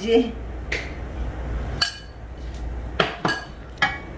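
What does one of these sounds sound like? A metal spoon taps against a plate.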